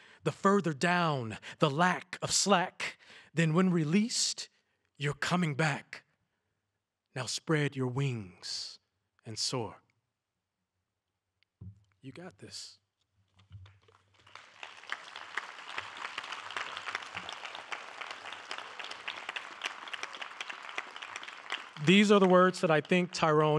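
A man speaks into a microphone with pauses, heard over loudspeakers.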